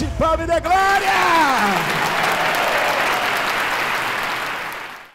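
A large audience cheers and applauds loudly.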